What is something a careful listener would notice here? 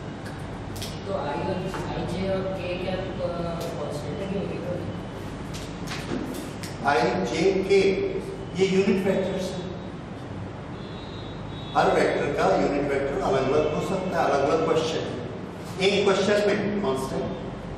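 A middle-aged man speaks calmly to a room.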